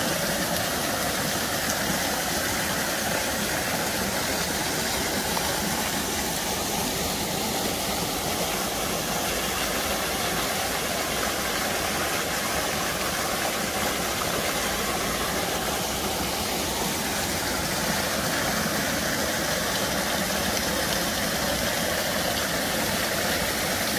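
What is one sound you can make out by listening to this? Water splashes steadily over a small stone spillway close by.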